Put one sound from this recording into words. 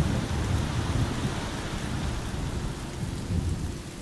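A car engine rumbles close by and passes.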